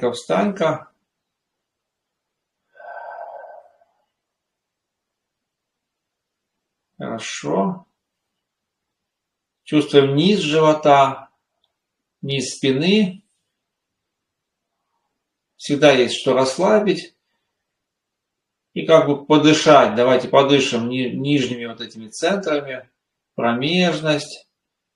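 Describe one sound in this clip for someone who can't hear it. A man speaks calmly and slowly close to a microphone, with long pauses.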